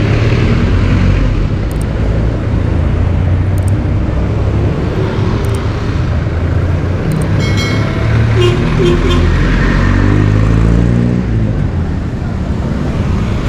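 Motorcycle engines hum and rumble past on a busy street.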